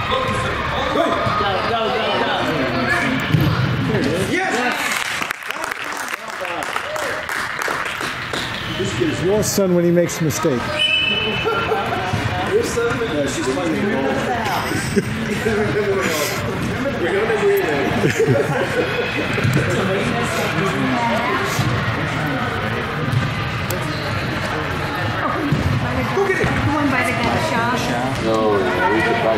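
Young players shout and call out to each other across a large echoing hall.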